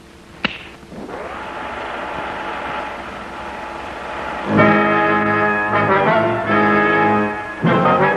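A film projector starts up and runs with a steady whir.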